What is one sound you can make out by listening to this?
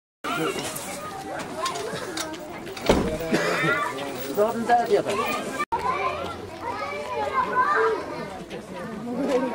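A crowd of men, women and children chatter nearby outdoors.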